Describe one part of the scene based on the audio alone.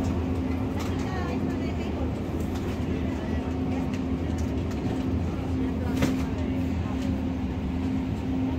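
Refrigerated display cases hum steadily.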